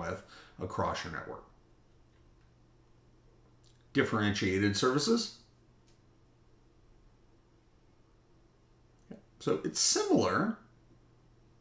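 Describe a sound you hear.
A middle-aged man speaks calmly into a close microphone, in short phrases with pauses.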